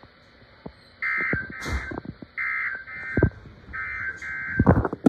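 A radio alarm sounds in short, repeated high beeps.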